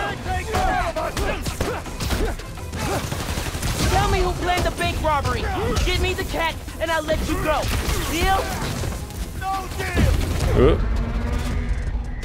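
Punches and kicks thud in a scuffle.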